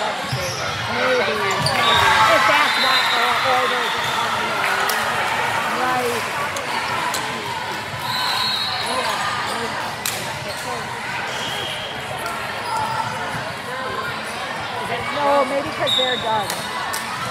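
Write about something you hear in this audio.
Young women talk and call out to each other in a large echoing hall.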